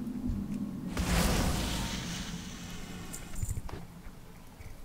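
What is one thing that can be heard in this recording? A magic spell whooshes with a rushing burst.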